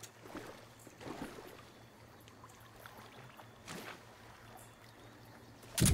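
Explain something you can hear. A man wades through shallow water with soft splashes.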